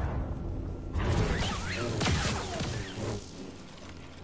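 Lightsabers clash with crackling sparks.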